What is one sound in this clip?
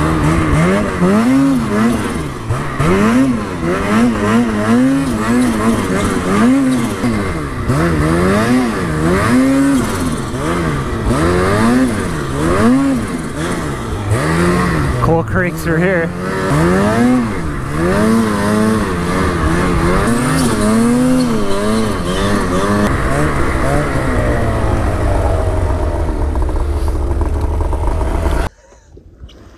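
A snowmobile engine revs up and down loudly, close by.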